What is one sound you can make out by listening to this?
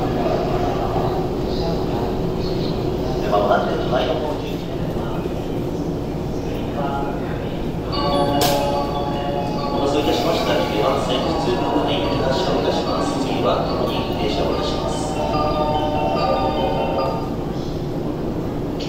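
A stopped train hums steadily in an echoing station.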